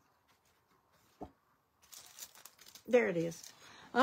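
A card rustles as it slides across paper.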